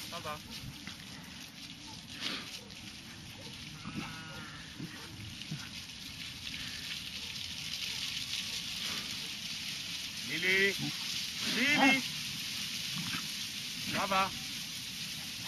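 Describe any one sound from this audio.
A flock of sheep bleats across a hillside.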